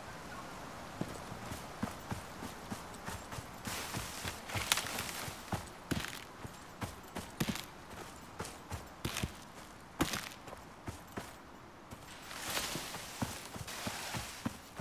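Footsteps swish and crunch through grass and brush.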